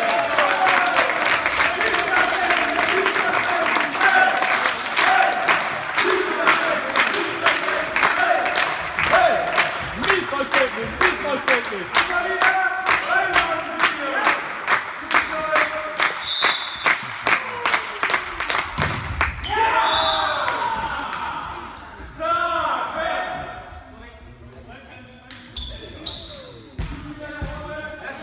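Young men chant and cheer loudly in an echoing hall.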